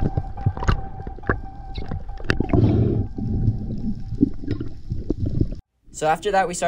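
Bubbles rumble and crackle close by underwater.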